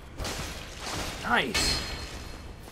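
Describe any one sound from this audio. A sword clangs against a metal shield.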